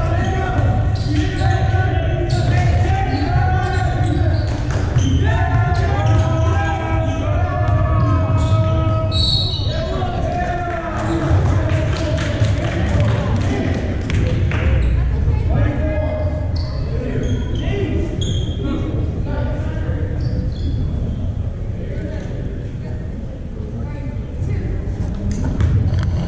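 Young people chatter nearby.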